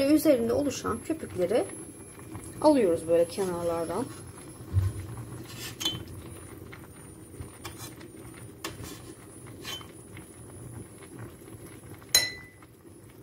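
A metal ladle clinks against the side of a pot.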